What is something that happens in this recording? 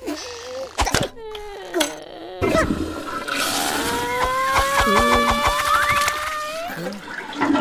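A cartoon vampire sings and laughs.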